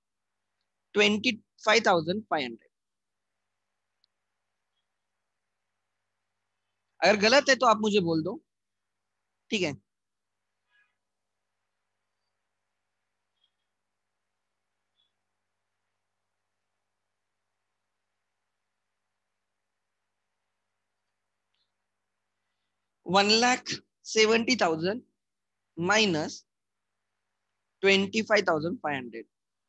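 A man speaks calmly into a close microphone, in short bursts with long pauses.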